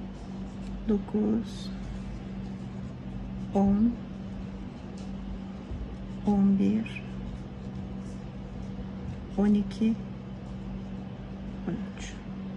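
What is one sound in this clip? A crochet hook softly pulls and loops yarn.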